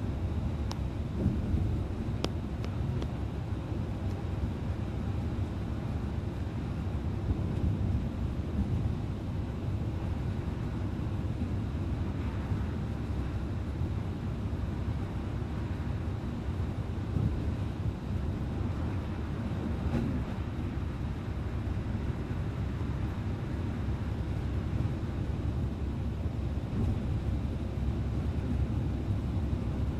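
Windshield wipers thump back and forth across the glass.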